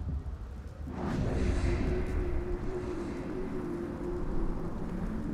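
A low, hollow drone swells and hums.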